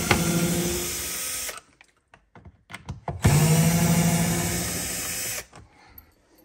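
A cordless drill whirs in short bursts, driving screws.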